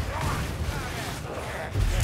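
A gun fires a loud blast.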